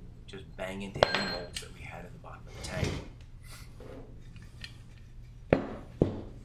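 Metal parts clink and knock sharply against a metal lid.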